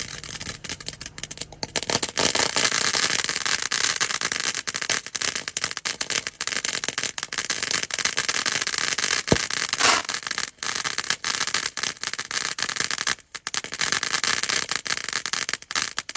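A fountain firework hisses and crackles steadily outdoors.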